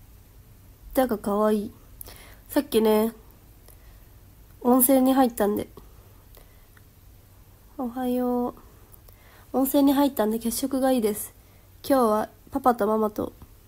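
A young woman speaks softly and close up in short bursts.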